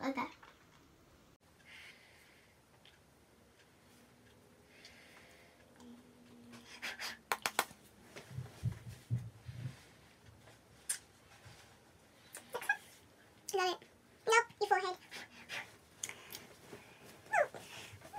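Two young girls talk and giggle close by.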